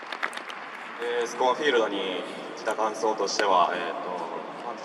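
A young man speaks calmly into a microphone over a loudspeaker, echoing in a large open space.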